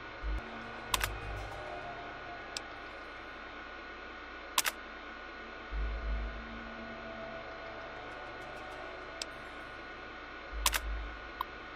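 A computer terminal clicks as options are chosen.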